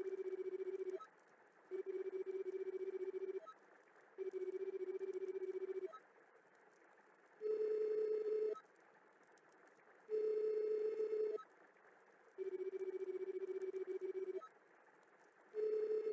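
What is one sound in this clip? Rapid electronic blips chatter in short bursts, like text being typed out.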